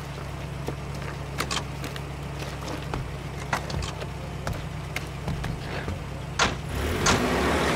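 An engine idles with a low steady rumble.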